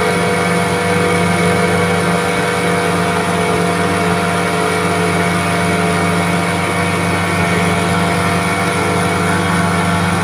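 Twin outboard motors drone steadily at speed.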